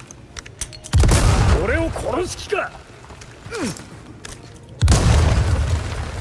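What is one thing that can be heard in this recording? An explosion booms loudly with a deep rumble.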